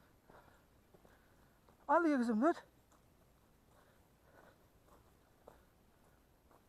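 Footsteps crunch softly on a dirt trail.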